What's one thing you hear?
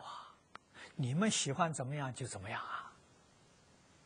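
An elderly man speaks warmly and with animation into a microphone.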